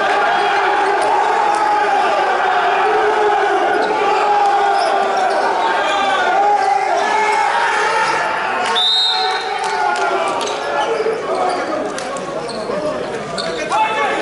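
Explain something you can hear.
Several men talk and call out loudly across a large echoing hall.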